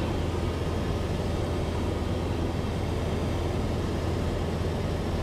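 A small plane's engine drones loudly and steadily from inside the cabin.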